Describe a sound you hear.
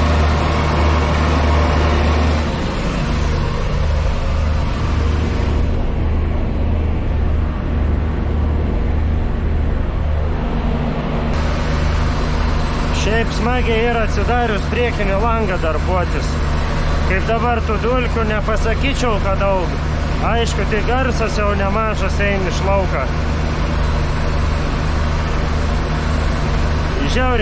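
A tractor engine drones steadily from inside the cab.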